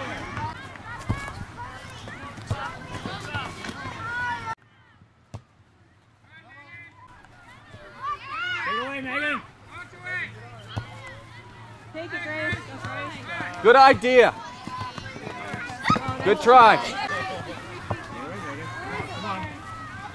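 Women and girls shout and cheer excitedly nearby, outdoors.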